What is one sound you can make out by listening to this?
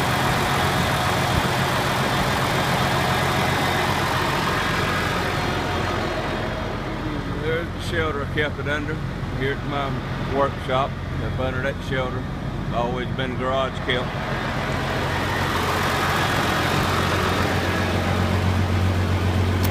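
A large diesel truck engine idles with a steady low rumble.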